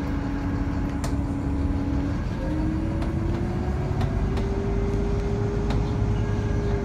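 Train wheels rumble and click on the rails.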